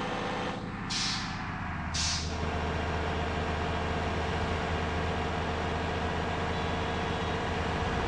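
A bus engine hums steadily at speed.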